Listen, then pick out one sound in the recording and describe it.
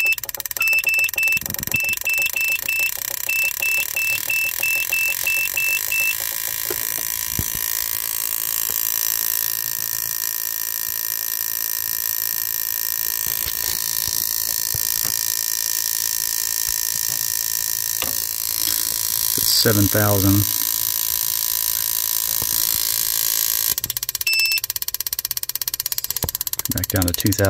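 Spark plugs crackle and buzz steadily with electric sparks.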